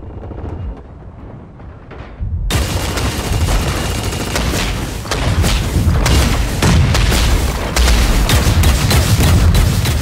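Footsteps run quickly over wooden boards and paving.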